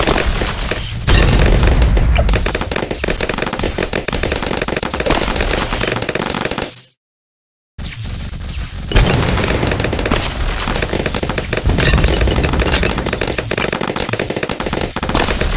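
Cartoon balloons pop in rapid bursts.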